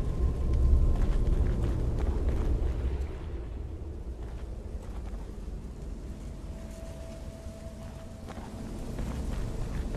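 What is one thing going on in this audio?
Footsteps tread slowly over soft ground.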